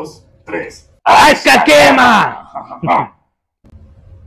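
A young man shouts loudly with excitement.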